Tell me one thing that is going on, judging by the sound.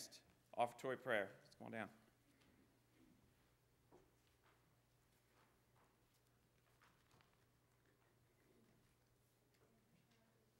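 A man speaks into a microphone in a large echoing room.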